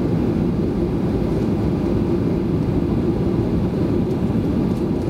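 A jet airliner's engines rumble steadily inside the cabin as the plane taxis.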